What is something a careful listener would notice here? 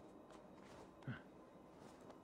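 Feet land with a soft thud on the ground.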